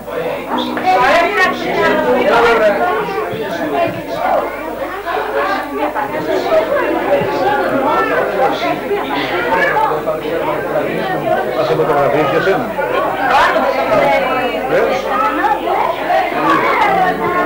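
A crowd of adults chatters lively close by.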